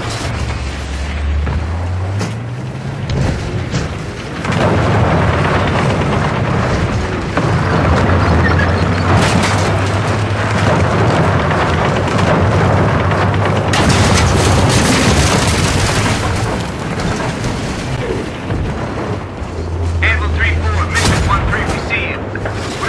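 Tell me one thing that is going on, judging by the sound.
A tank engine rumbles low and steadily as the tank drives.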